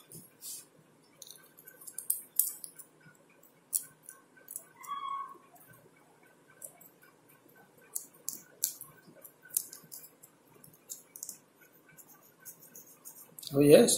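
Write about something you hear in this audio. Small metal parts click and tap softly between fingers.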